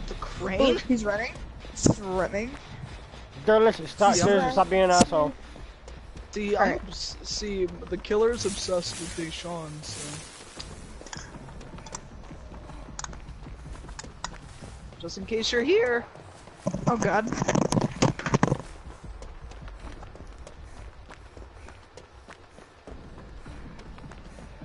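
Footsteps run quickly over dry leaves and soft ground.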